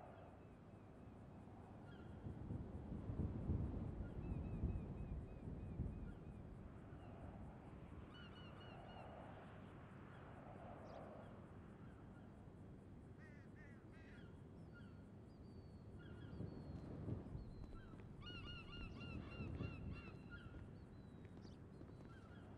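Wind gusts across an open outdoor space.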